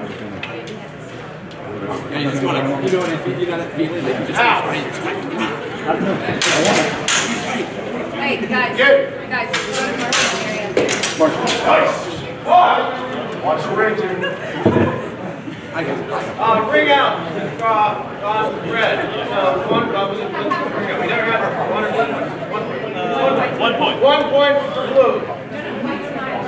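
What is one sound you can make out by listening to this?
A man talks loudly in a large echoing hall.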